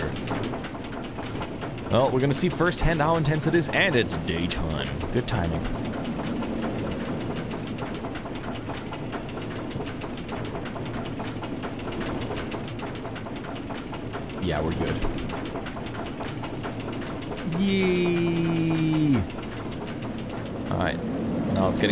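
A roller coaster train rumbles and rattles along its track.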